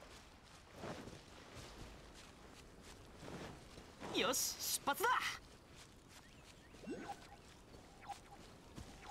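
Footsteps run quickly over sand and grass.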